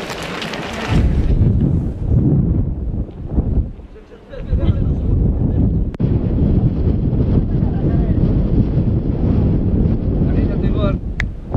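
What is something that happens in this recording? Wind rumbles across open ground.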